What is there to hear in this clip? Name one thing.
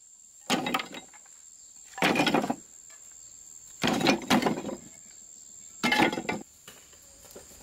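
Chunks of fired clay clatter as they are dropped into a metal wheelbarrow.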